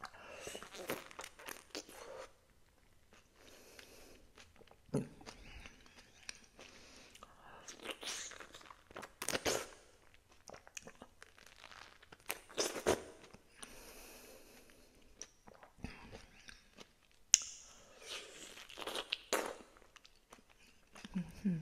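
A young woman bites and chews crisp fruit close to a microphone.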